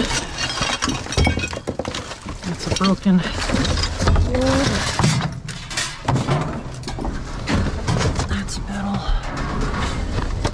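Cardboard and debris rustle and scrape as they are handled close by.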